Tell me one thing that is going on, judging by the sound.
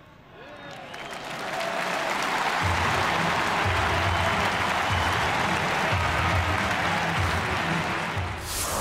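A large stadium crowd cheers.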